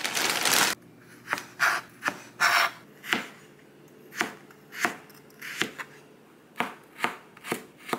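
A knife chops on a cutting board in steady knocks.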